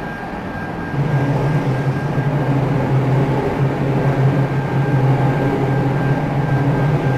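An electric commuter train's traction motors hum under power.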